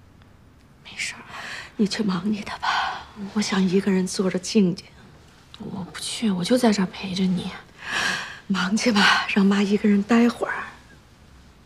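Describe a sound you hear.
An elderly woman speaks tearfully up close.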